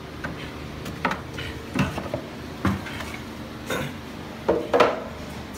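Plastic knocks against a metal sink.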